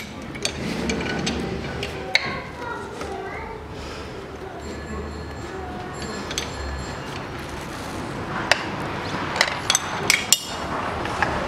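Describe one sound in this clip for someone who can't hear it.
Plastic parts click and rattle close by.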